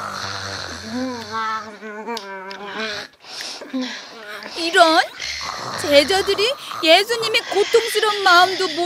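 A young boy wails and sobs.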